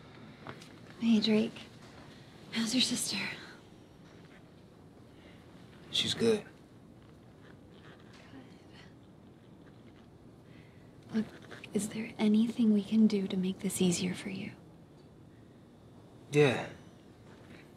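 A young woman speaks softly and earnestly, close by.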